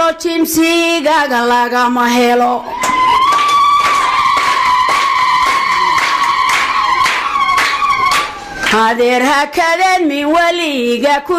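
An elderly woman sings loudly through a microphone.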